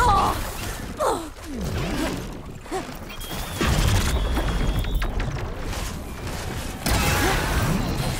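A mechanical creature lets out gliding, warbling electronic cries.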